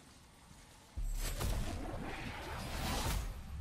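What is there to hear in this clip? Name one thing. A burst of magical energy crackles and whooshes.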